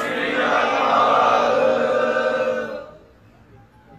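A man chants loudly through a loudspeaker.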